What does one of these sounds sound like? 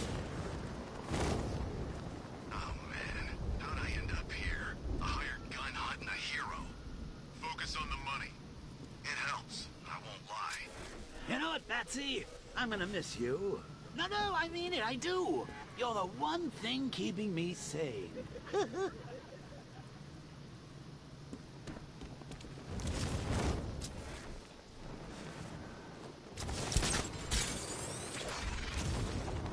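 Wind rushes loudly past in strong gusts.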